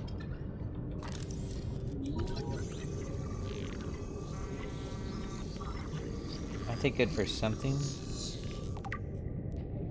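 A scanning device hums with a steady electronic whine.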